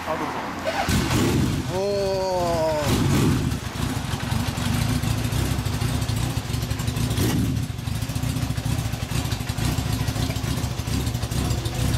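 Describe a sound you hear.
Several motorcycle engines rumble steadily.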